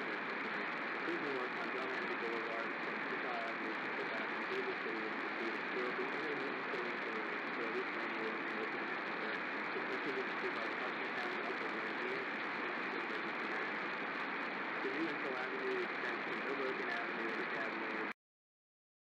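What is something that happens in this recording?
Radio static hisses and crackles steadily, then cuts off.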